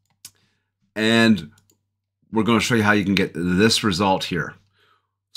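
A man talks with animation through a close microphone.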